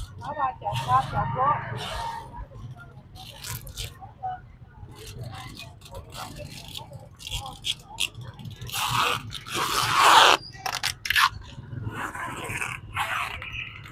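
People talk in a busy outdoor market crowd.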